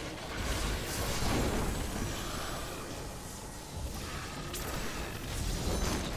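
A beam hums and sizzles.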